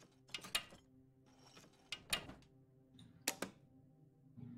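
A metal lever clicks and clanks sharply several times.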